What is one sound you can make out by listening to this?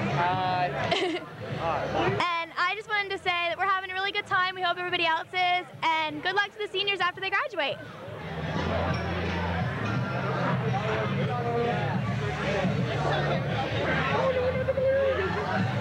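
A crowd chatters loudly in the background.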